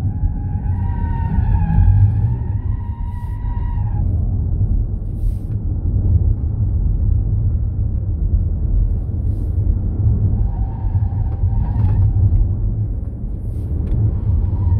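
Wind rumbles and buffets against the car.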